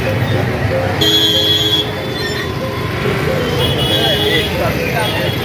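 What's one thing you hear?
A vehicle horn honks.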